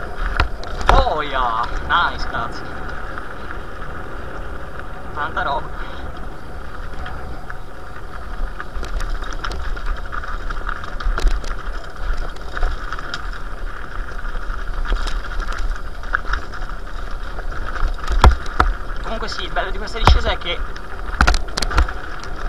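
Bicycle tyres crunch and rumble over loose stones.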